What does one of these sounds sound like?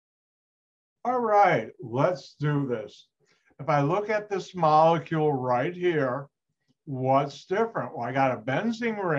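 An older man speaks calmly through a computer microphone, as if explaining.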